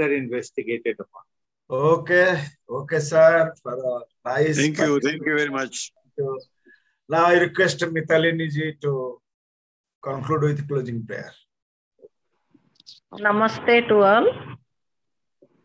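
An elderly man talks calmly over an online call.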